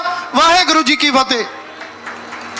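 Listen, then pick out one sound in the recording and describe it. A man speaks loudly through a microphone and loudspeakers.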